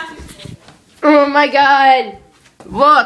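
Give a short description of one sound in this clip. A young girl sings loudly close to the microphone.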